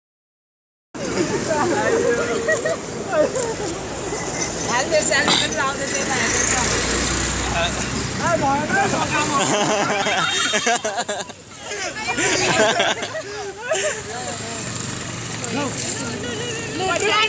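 A crowd of men and women talk and shout over each other nearby, outdoors.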